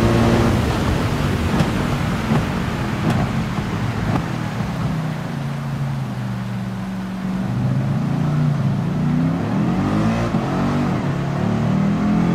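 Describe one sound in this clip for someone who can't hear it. A racing car engine roars, dropping in pitch into a bend and then revving up again.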